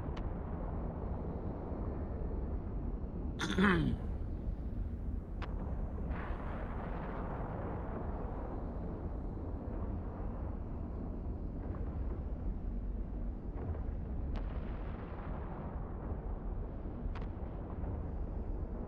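A deep, steady rumble of spaceship engines drones throughout.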